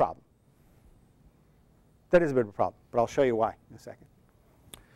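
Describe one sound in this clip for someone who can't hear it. A middle-aged man speaks calmly through a lapel microphone.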